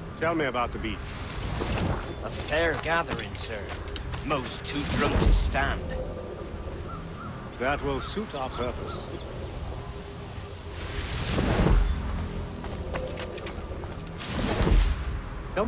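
Leaves rustle as someone pushes through dense bushes.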